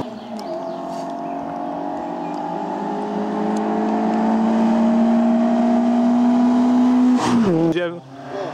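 A small car engine revs hard as the car races up a winding road.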